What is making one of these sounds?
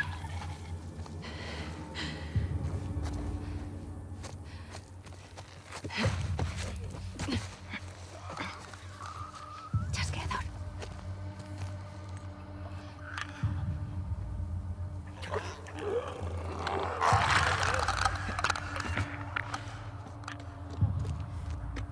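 Soft footsteps creep over creaking wooden floorboards.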